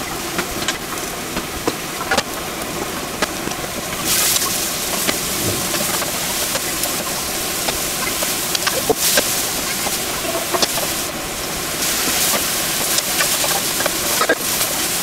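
Food sizzles loudly in a hot pan.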